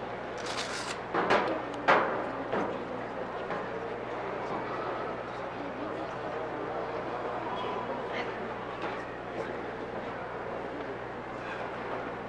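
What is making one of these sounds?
Footsteps shuffle softly in a large echoing hall.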